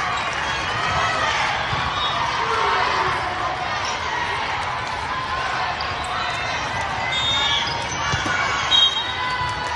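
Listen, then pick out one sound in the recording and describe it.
A volleyball thumps off a player's arms.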